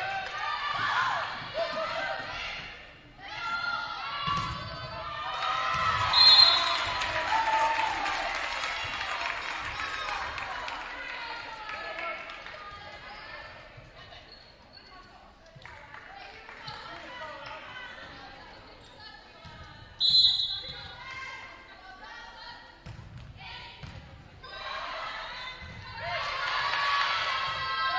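A volleyball is hit with sharp slaps.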